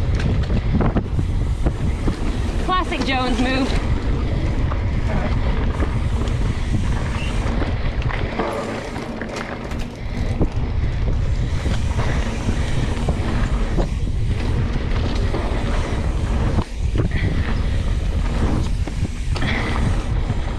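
Wind rumbles loudly over a microphone.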